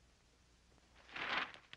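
A cardboard box rustles and scrapes as it is opened.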